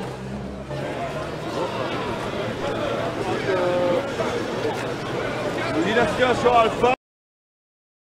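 A man talks loudly nearby.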